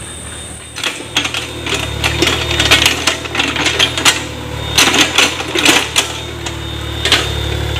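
Mud and clods thud and splash as an excavator bucket digs.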